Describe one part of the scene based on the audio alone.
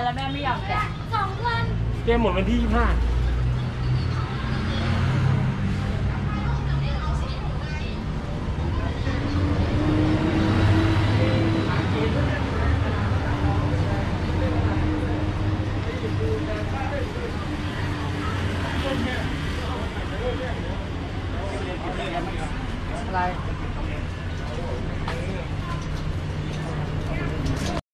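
Footsteps scuff along a pavement up close.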